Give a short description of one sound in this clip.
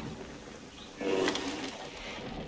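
A flaming arrow strikes a large animal with a crackling burst.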